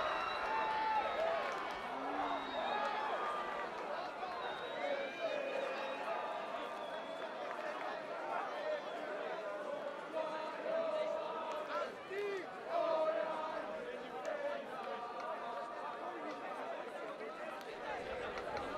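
A large crowd of boys sings and chants loudly outdoors.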